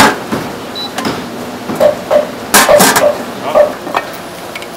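A metal lid clanks onto a steamer pot.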